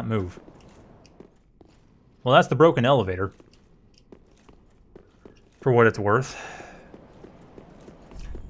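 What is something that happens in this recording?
Armoured footsteps clink on stone.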